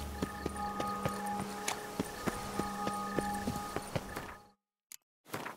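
Footsteps crunch steadily on cobblestones.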